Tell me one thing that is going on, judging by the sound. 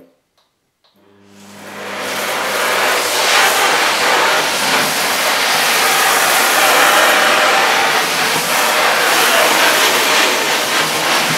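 A vacuum cleaner starts up and whirs loudly.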